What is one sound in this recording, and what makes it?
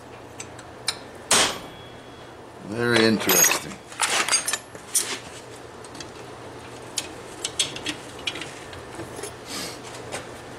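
Metal pieces clank and scrape against each other.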